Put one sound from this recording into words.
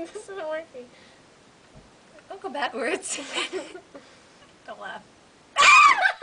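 A second young woman talks and laughs close by.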